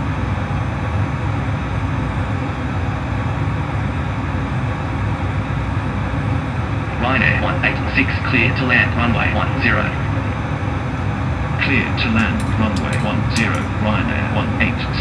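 A steady low engine drone hums throughout.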